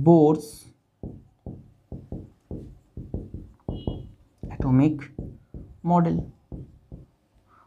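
A marker squeaks and taps on a whiteboard in quick strokes.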